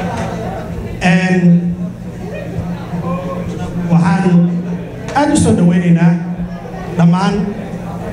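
A man speaks with emphasis into a microphone, echoing slightly in a room.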